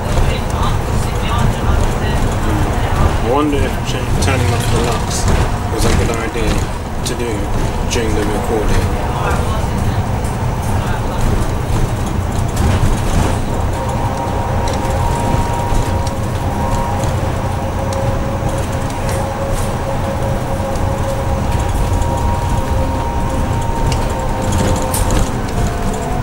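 A bus body rattles and creaks over the road.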